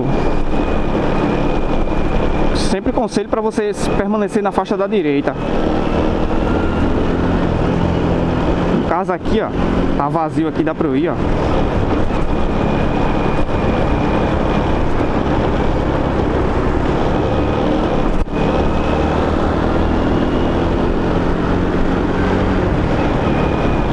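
A small scooter engine hums steadily while riding.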